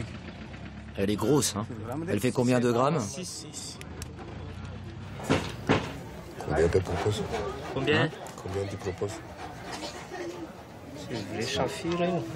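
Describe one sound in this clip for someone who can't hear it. Young men talk together nearby.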